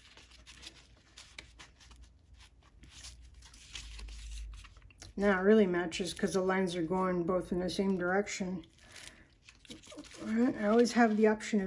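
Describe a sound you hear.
Stiff paper pages rustle and flip.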